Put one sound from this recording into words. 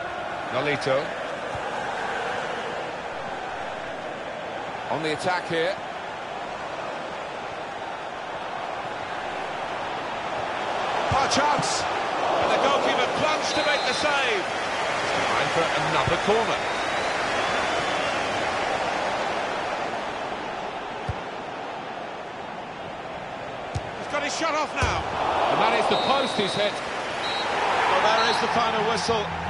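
A stadium crowd roars steadily, swelling at times.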